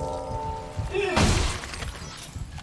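A heavy boot stomps down with a wet crunch.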